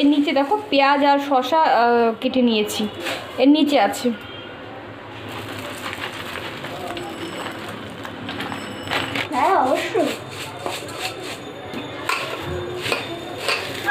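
A hand rustles and crunches through a bowl of puffed rice.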